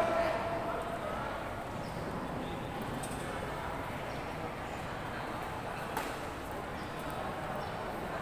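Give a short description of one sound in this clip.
Bare feet thud and scuff on a mat.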